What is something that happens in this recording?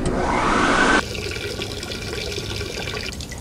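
A toilet flushes with rushing water.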